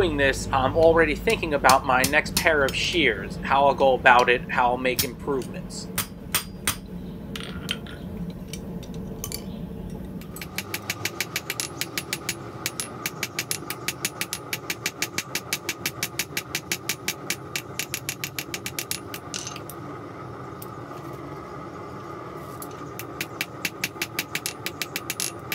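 A hammer strikes hot metal on an anvil in quick, ringing blows.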